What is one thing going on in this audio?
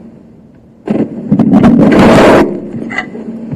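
A chair rustles and bumps as a man sits down.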